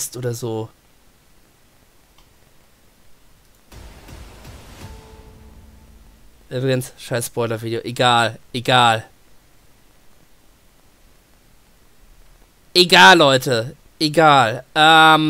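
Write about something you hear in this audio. A man speaks with animation close to a headset microphone.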